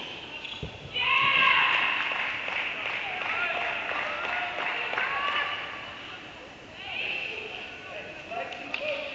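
A group of young women cheer and shout loudly in an echoing indoor hall.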